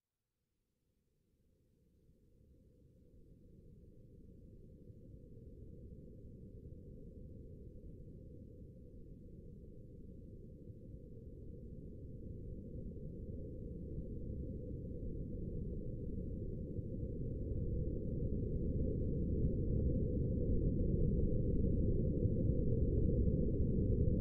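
A huge explosion rumbles deeply, building into a roaring blast.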